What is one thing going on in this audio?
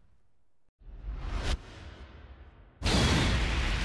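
A rushing whoosh swells.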